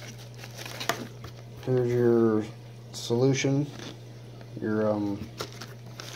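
A plastic bag crackles as it is handled.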